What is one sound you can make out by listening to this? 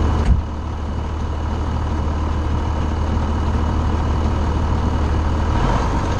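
A seed drill rattles and clanks as it is pulled along.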